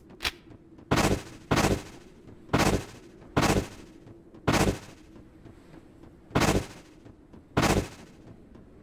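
Short whooshing bursts sound again and again as a game character dashes.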